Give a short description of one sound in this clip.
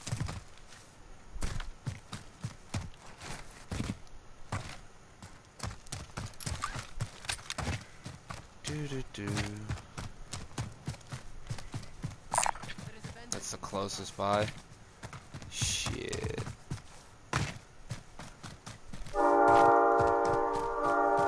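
Footsteps thud quickly on dirt and grass.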